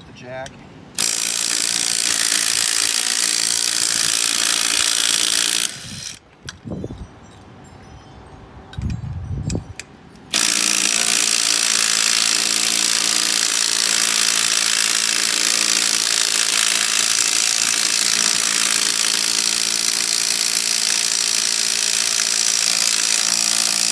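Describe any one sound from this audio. A cordless drill whirs loudly.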